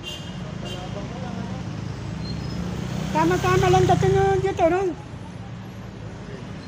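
Motorcycle engines idle nearby with a low rumble.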